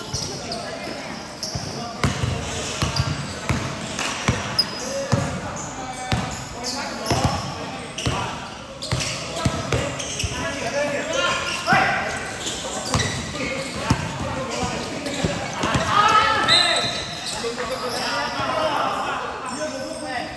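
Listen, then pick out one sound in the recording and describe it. Young men shout and call out to each other during a game.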